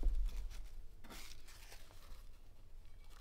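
A paper tea bag rustles as it drops into a metal flask.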